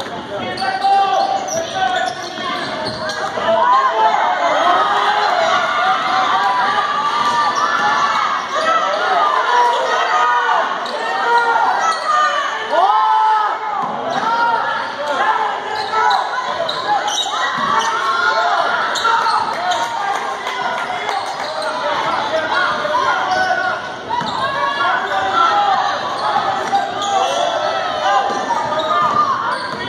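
Basketball players run with quick thudding footsteps in a large echoing gym.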